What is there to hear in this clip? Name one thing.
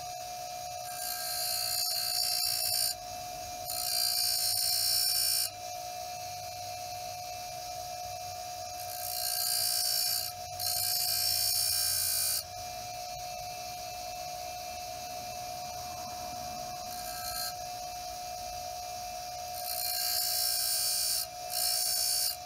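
Metal grinds against a spinning grinding wheel with a harsh hiss in short bursts.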